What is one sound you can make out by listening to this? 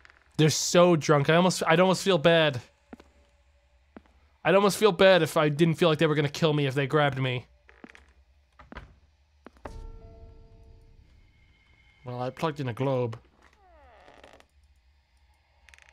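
Footsteps creak on a wooden floor.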